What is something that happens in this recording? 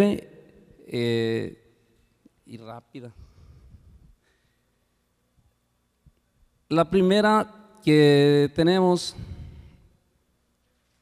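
A middle-aged man speaks through a microphone over loudspeakers, with a hall echo.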